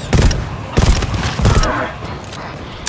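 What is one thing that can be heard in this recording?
Gunshots fire in short bursts.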